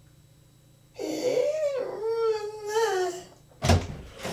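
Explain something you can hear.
A young woman speaks theatrically, close by.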